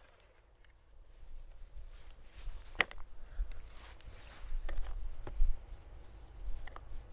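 Hands click and fiddle with a trimmer's head.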